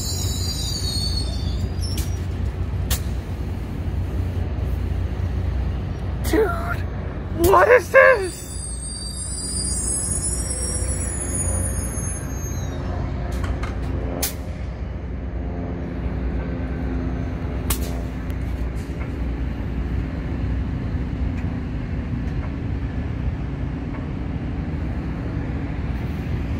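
A passenger train rolls slowly past with a low, steady rumble.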